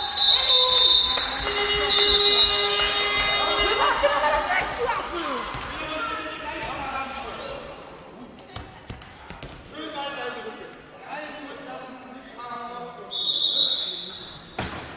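A referee's whistle blows sharply in a large echoing hall.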